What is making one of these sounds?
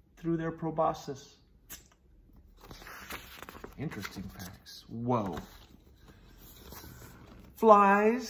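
A man reads aloud close by, with a lively, expressive voice.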